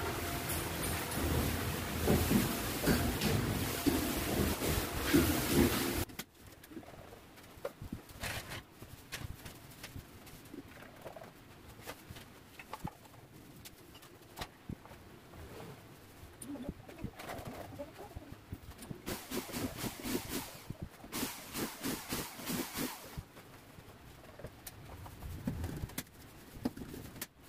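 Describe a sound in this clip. A long-handled scraper rasps against a plaster wall.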